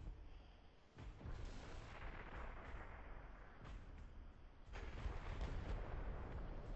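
Explosions boom loudly, one after another.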